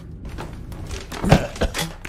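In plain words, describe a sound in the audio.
A zombie groans and snarls close by.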